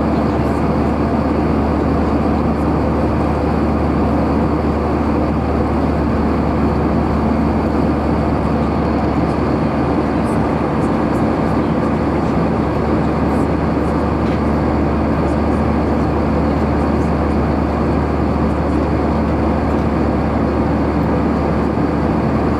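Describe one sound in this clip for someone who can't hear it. A jet engine roars steadily in flight, heard from inside the cabin.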